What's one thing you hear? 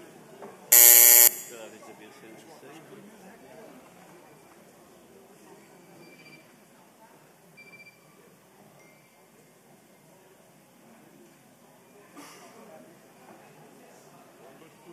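Many men and women chatter quietly in a large hall.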